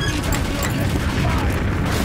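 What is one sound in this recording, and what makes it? A machine gun fires in a rapid, rattling burst.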